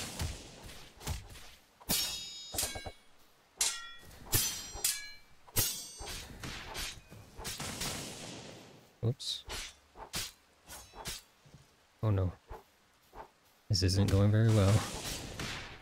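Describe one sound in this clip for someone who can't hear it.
Magic blasts crackle and sparkle.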